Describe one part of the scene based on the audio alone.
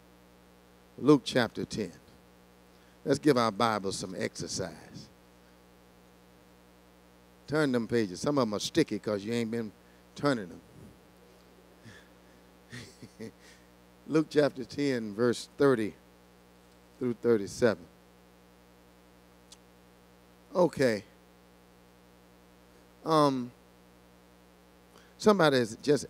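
A man speaks slowly and solemnly through a microphone and loudspeakers, with long pauses.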